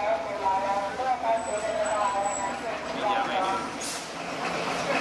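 A small train rolls along the track.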